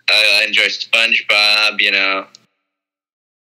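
A high, squeaky cartoon voice speaks excitedly.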